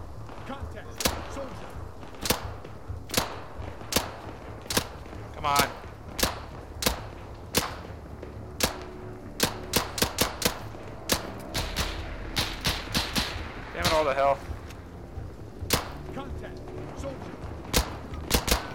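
Gunshots crack one after another.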